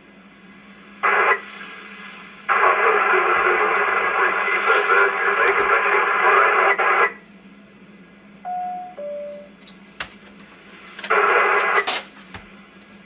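Bursts of static hiss from a radio loudspeaker.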